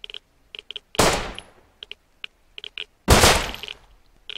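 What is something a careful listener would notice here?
A gun fires single shots.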